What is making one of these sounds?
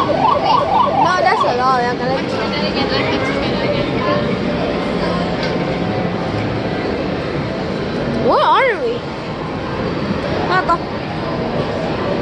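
A steady din of game machine sounds fills the room.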